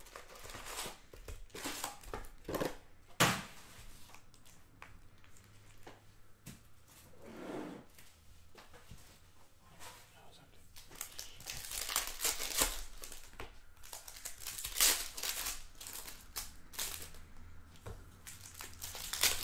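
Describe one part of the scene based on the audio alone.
Foil wrappers crinkle and rustle as hands handle card packs.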